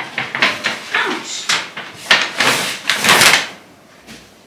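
Paper shopping bags rustle and crinkle as they are set down.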